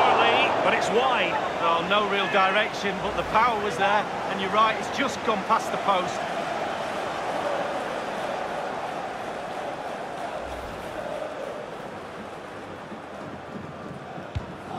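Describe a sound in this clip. A large stadium crowd roars steadily, slowly fading.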